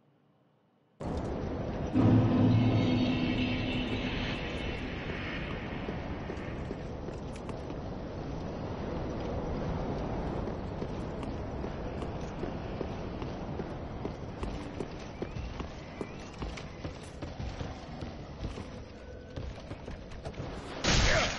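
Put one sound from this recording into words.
Armoured footsteps clank quickly on stone and wood.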